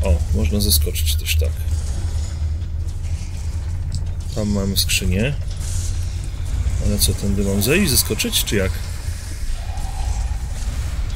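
A deep industrial rumble drones steadily.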